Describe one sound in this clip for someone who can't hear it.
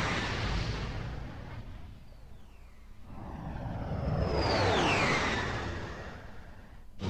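A spaceship's rocket thrusters roar past.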